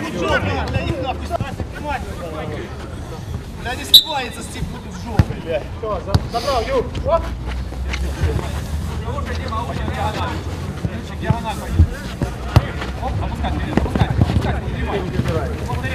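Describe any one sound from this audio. Men shout and call out across an open pitch outdoors.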